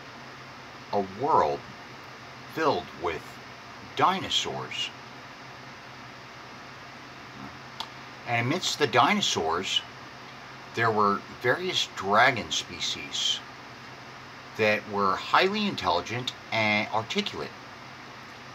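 A middle-aged man talks calmly in bursts, close to the microphone.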